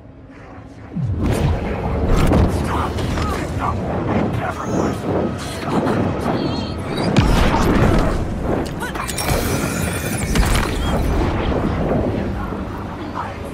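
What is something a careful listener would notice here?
A loud violent scuffle erupts with heavy thuds and rushing noise.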